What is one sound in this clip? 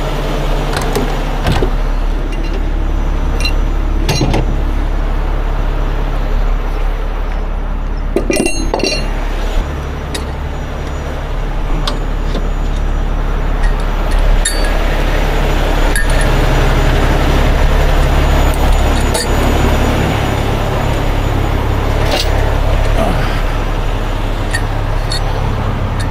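A large truck engine idles with a steady low rumble.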